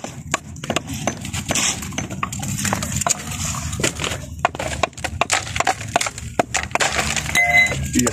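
A hammer chips sharply at a concrete block.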